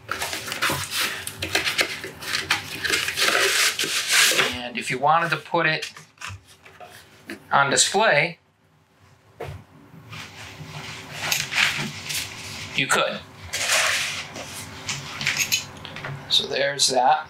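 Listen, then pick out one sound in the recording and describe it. Stiff card rustles and scrapes close by.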